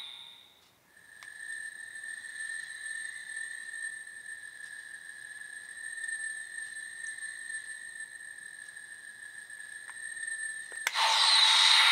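A toy belt buckle hums with a steady high electronic tone.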